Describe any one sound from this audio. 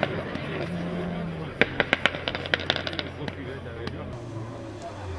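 A rally car engine hums in the distance.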